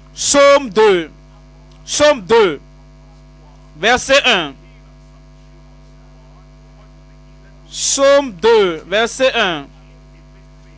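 An elderly man speaks through a microphone in short emphatic bursts with long pauses.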